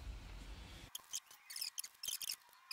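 Plastic rustles and crinkles.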